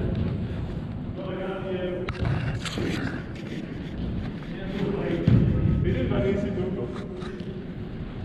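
Men shout to each other across the hall.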